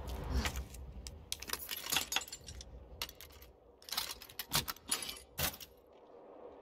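A metal padlock clicks and rattles as a key turns in it.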